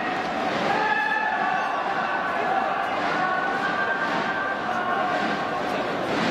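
Fans chant and sing together in a large stadium.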